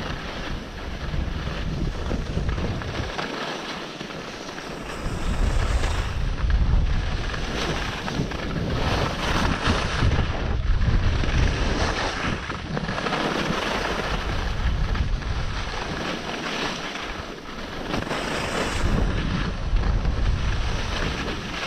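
Wind rushes past a helmet-mounted microphone.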